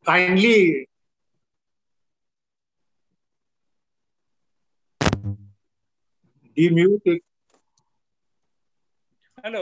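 An elderly man speaks over an online call in short bursts.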